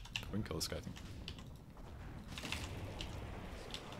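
Spells crackle and burst in a fight.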